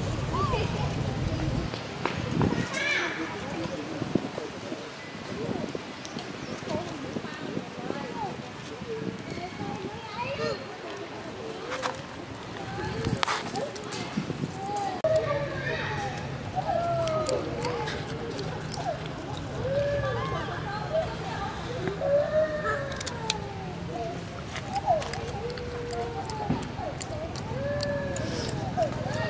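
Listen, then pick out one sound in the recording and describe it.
A baby monkey squeaks and whimpers close by.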